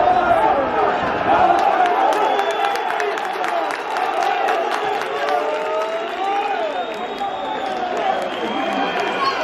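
A large crowd chatters and shouts all around, outdoors.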